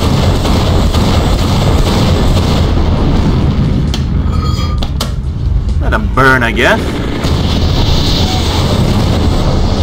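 Fireballs explode with deep booms.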